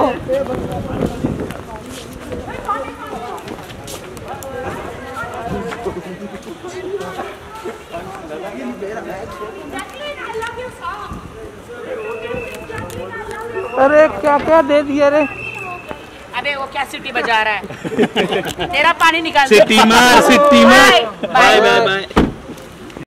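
A crowd of men chatter nearby outdoors.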